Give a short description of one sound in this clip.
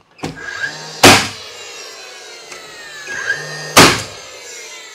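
A nail gun fires with sharp loud bangs.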